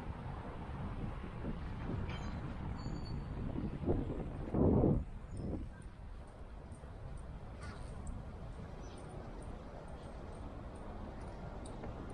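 Wind rumbles outdoors, gusting briefly.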